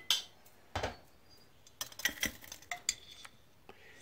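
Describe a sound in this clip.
A metal chain rattles as it is lowered into a pot.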